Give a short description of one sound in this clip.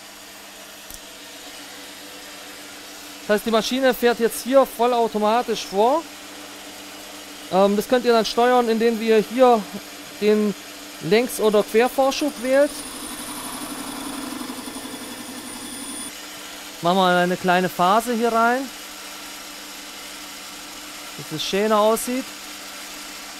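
A lathe's cutting tool shaves a spinning metal tube.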